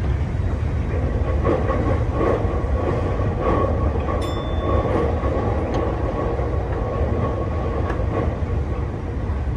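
A motor hums with a rising and falling whine.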